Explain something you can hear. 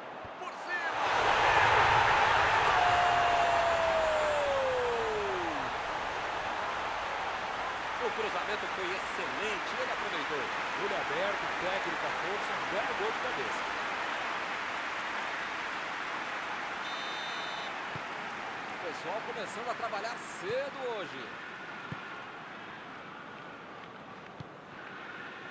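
A large stadium crowd roars and cheers loudly, then keeps up a steady din.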